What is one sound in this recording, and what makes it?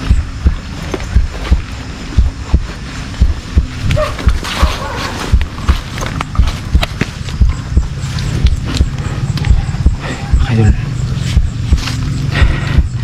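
Footsteps crunch through leaves and undergrowth.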